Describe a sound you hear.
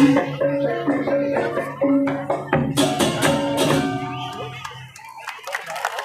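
Metal percussion instruments ring out in a lively, loud ensemble.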